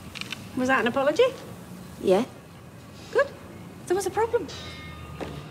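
A middle-aged woman speaks up close, with animation.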